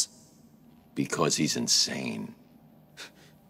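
A man answers in a deep, low voice.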